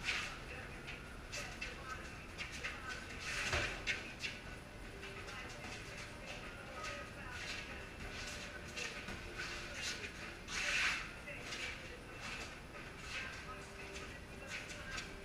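Boxing gloves thump against punch mitts in quick bursts.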